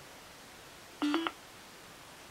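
A phone gives a quick two-note electronic chime.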